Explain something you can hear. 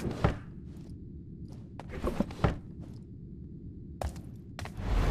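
Soft footsteps thud on a wooden floor.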